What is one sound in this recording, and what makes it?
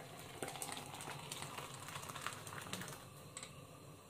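Hot liquid pours and splashes into a metal mug.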